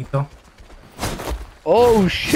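A sword swooshes through the air.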